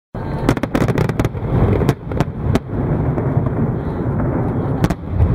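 Fireworks thump with deep, rumbling booms.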